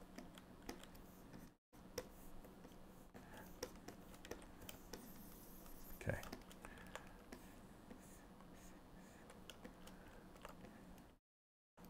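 A pen taps and scrapes softly on a drawing tablet.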